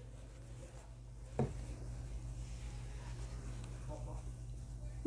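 A crochet hook softly rustles as it pulls yarn through stitches.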